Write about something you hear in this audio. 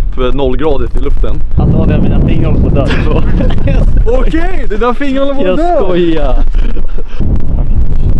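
Young men laugh and shout with excitement outdoors.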